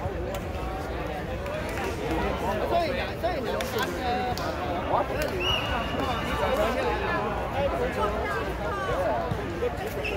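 A crowd of young people chatter and talk all around outdoors.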